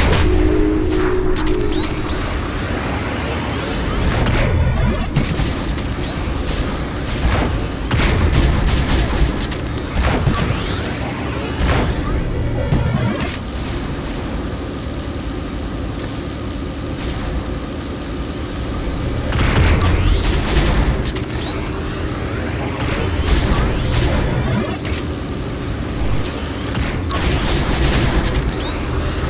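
Game tanks fire shots with sharp blasts.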